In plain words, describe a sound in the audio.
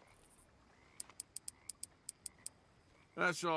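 Poker chips click rapidly against each other.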